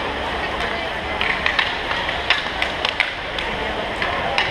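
Inline hockey sticks clack against a puck on a concrete rink.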